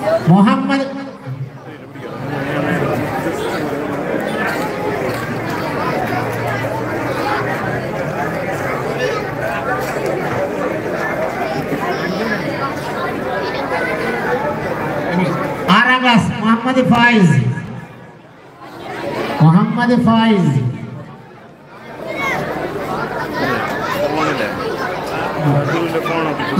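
A crowd of people chatters and calls out throughout.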